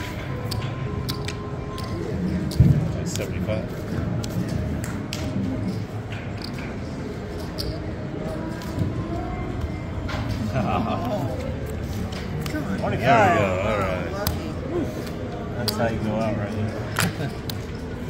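Casino chips click against each other.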